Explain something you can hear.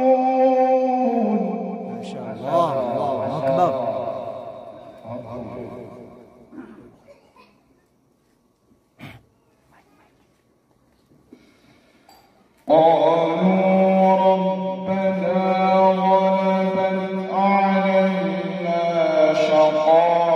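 A man chants in a long, melodic voice through a microphone, in an echoing hall.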